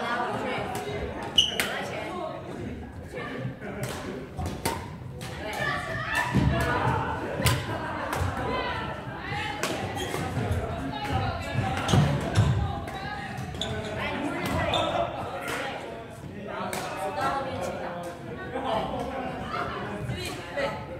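Badminton rackets hit a shuttlecock with sharp pops.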